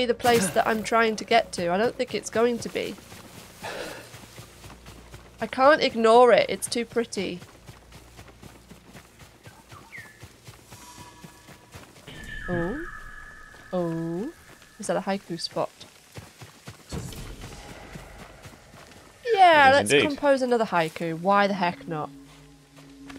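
A woman talks with animation into a microphone.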